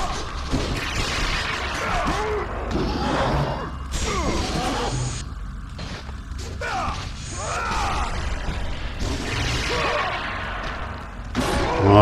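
Weapons strike bodies with heavy thuds.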